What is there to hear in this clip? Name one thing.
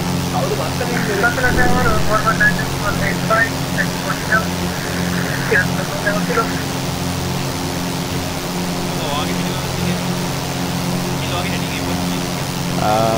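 A small propeller plane's engine drones steadily.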